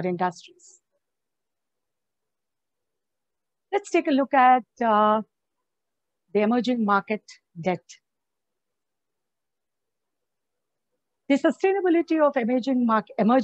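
A middle-aged woman speaks calmly over an online call, in short bursts with pauses.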